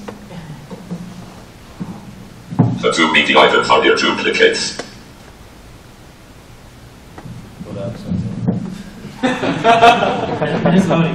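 A man speaks through a microphone to an audience in a room with some echo.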